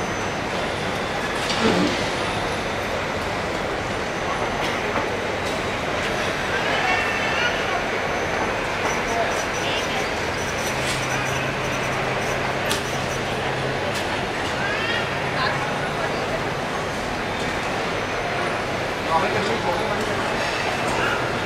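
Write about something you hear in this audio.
A jet engine roars steadily as an airliner taxis nearby, outdoors.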